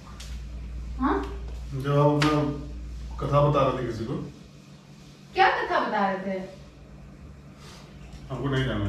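A young woman talks with animation to a man nearby.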